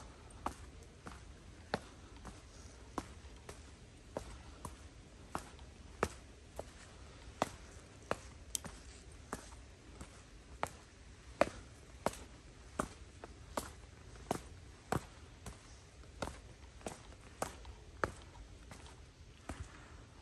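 Footsteps tap steadily on stone steps outdoors.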